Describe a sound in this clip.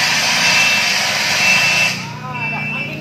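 A fire extinguisher hisses loudly as it sprays.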